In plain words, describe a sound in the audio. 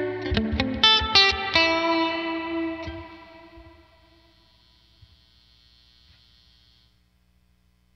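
An electric guitar plays a quick run of notes that rings out and fades.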